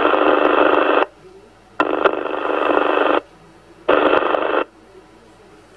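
A radio receiver gives out loud, harsh bursts of static hiss.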